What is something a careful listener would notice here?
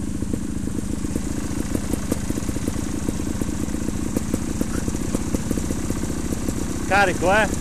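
A motorcycle engine putters steadily at low revs close by.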